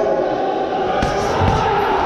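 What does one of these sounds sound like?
Boxing gloves thump against pads.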